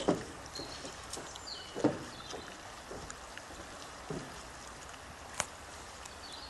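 Dull thuds and knocks sound on a metal bridge now and then as a climber moves.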